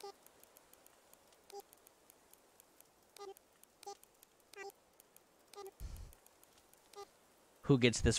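Short soft pitched blips sound at intervals.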